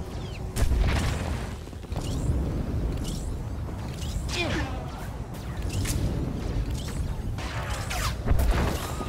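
Energy blasts zap and crackle.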